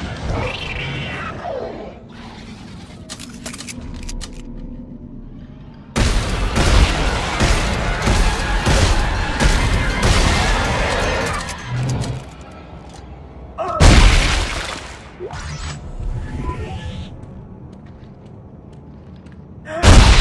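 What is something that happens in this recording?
Heavy booted footsteps clank on a metal floor.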